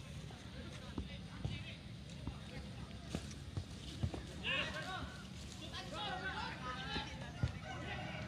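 A football is kicked on a grass field.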